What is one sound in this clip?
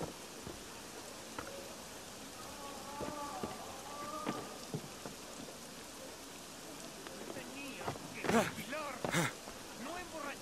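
Footsteps thud on roof tiles.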